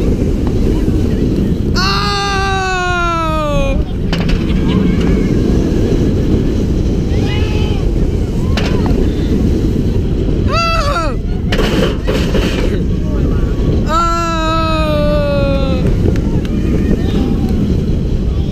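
Wind roars loudly past riders on a fast-moving roller coaster.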